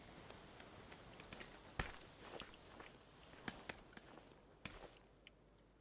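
Footsteps scuff across a hard floor.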